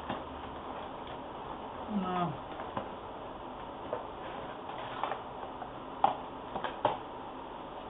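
Cardboard packaging rustles and taps as hands handle it.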